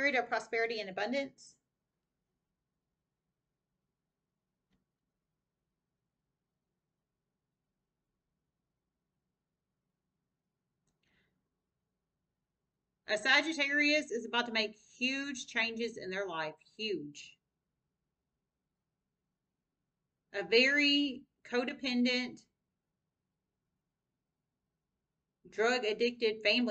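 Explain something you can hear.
A young woman speaks calmly and close, with long pauses.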